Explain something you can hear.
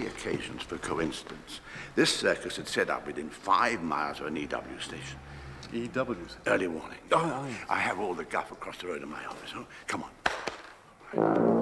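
Two men talk with each other close by, one speaking with animation.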